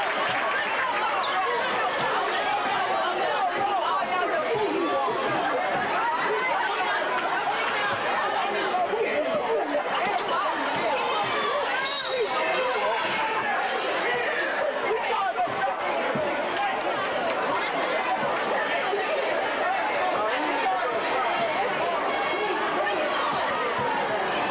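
A crowd chatters and cheers steadily in a large echoing gym.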